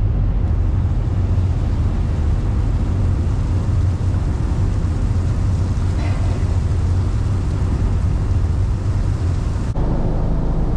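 Water churns and splashes against a ship's hull.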